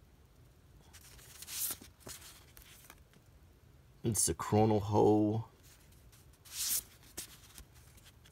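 Paper envelopes rustle and slide against each other as a hand shuffles them.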